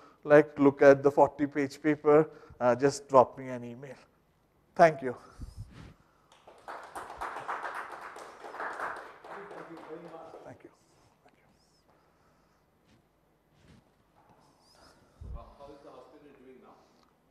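A man speaks calmly to a small audience in a room with some echo.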